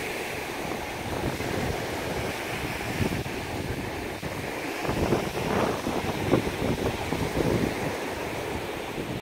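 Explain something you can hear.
Small waves wash onto a sandy shore.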